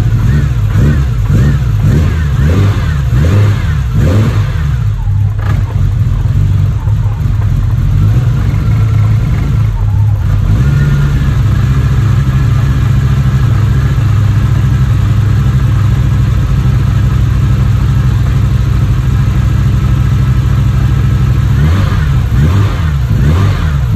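An engine revs up and down in quick bursts.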